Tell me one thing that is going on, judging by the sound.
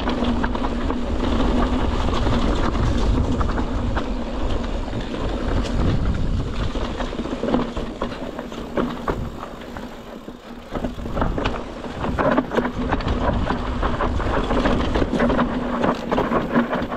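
Wind rushes past in loud gusts.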